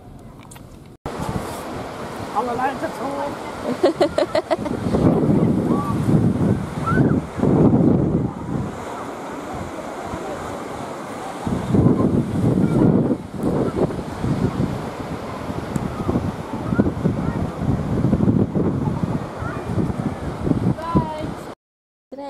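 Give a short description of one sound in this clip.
Wind gusts loudly outdoors.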